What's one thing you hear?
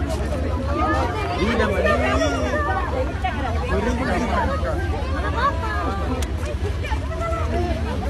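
A crowd of men and women talk over one another close by, outdoors.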